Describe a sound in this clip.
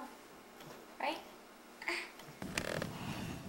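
A little girl giggles and squeals up close.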